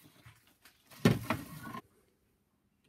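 Bottles clink as a bottle is taken from a fridge.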